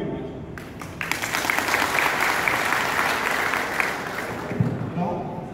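A crowd of men claps and cheers.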